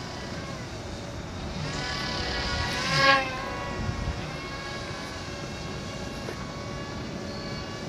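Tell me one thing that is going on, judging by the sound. A small model airplane engine buzzes overhead, rising and falling in pitch.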